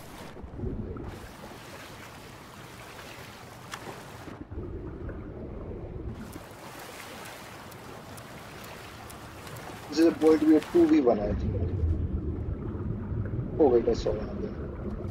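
Water splashes and swishes as a swimmer paddles through it.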